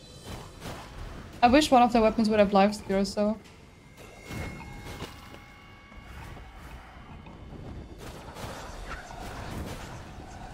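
Video game sound effects of hits and blasts play.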